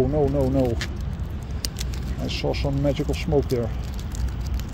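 A plastic bag crinkles in someone's hands.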